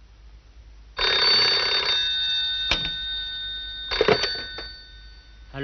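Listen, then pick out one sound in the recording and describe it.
A telephone rings loudly.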